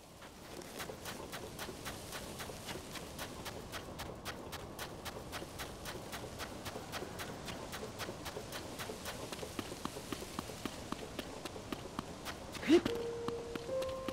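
Footsteps crunch quickly and steadily through soft sand.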